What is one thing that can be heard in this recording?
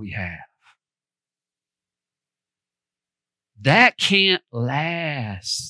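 A man speaks with animation through a headset microphone.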